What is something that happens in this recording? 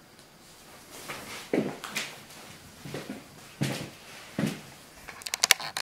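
Clothing rustles as a woman gets up from a chair.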